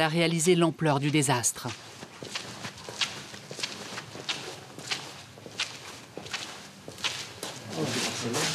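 Footsteps walk steadily on a hard floor in a large, echoing room.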